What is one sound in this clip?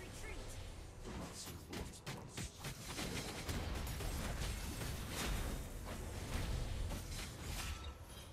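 Game weapons strike with sharp hits.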